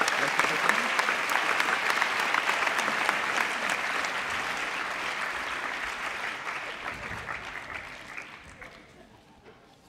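A crowd applauds loudly in a large hall, then the applause fades.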